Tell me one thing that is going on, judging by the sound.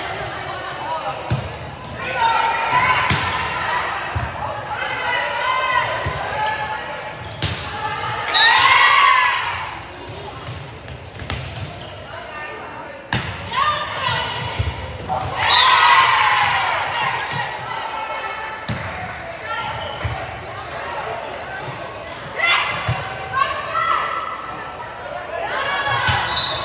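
Girls shout and cheer in a large echoing gym.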